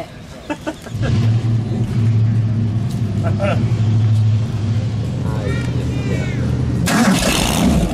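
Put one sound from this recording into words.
A car engine starts and idles with a deep, steady rumble.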